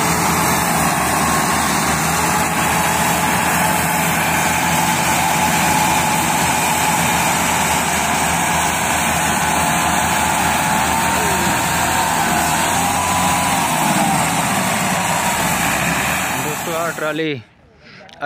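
Tractor engines rumble loudly.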